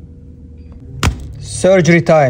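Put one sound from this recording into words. A phone is set down on a hard surface with a sharp knock.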